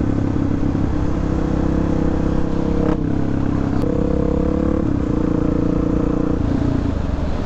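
A motorcycle engine roars steadily at speed.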